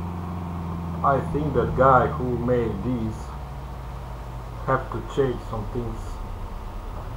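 A man talks into a microphone in short bursts.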